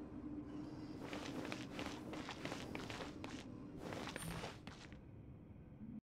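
Magical energy crackles and bursts in quick flurries.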